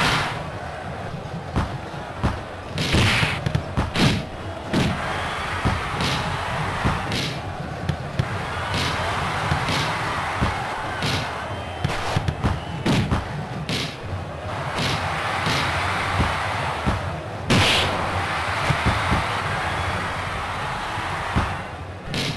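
A ball is kicked with sharp thuds, again and again.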